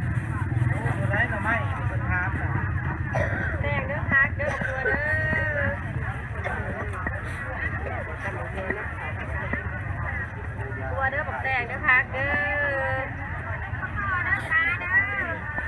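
Several adults chatter nearby, outdoors.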